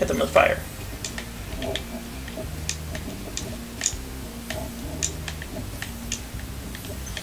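Short bright chimes ring as gems are picked up.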